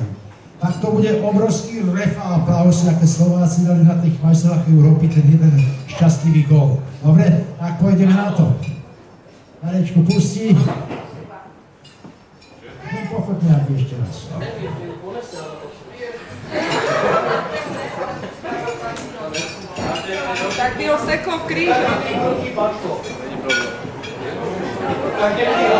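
Music plays through loudspeakers in a room.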